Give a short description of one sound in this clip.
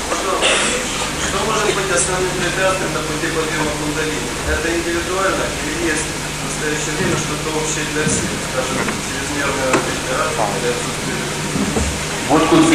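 An elderly woman speaks calmly into a microphone, heard through a loudspeaker.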